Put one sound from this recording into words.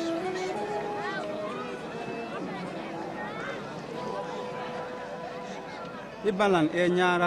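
A crowd of men and women murmurs and chatters outdoors.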